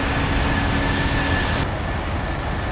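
Jet engines roar loudly from outside as an airliner flies past.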